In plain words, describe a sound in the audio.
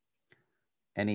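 A man speaks through an online call.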